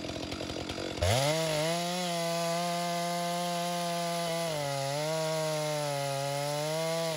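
A chainsaw roars at high revs, cutting through wood.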